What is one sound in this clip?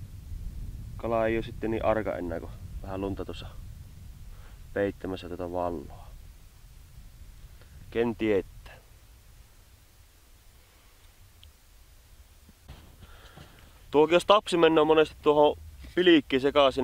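A man speaks calmly and close by, in bursts with pauses.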